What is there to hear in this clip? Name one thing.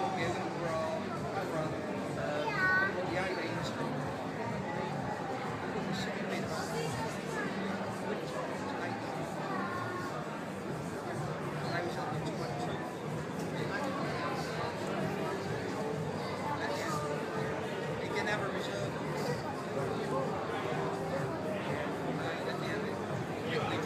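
A crowd of people murmurs and chatters throughout a large echoing hall.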